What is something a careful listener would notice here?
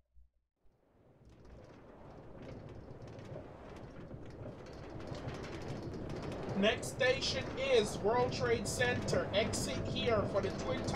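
A cart rolls along rails with a rumble that grows louder.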